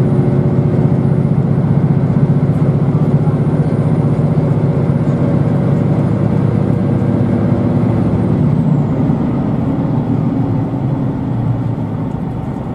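A train rumbles steadily along the tracks, heard from inside.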